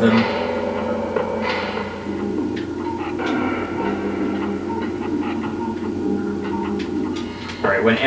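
Video game music plays with a low steady hum.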